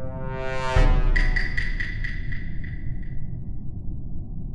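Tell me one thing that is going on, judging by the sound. A bright electronic chime swells and rings out.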